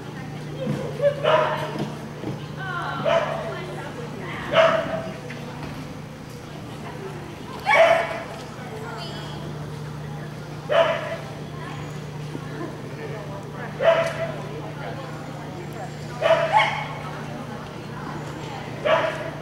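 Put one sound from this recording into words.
A woman calls out short, loud commands to a dog in a large echoing hall.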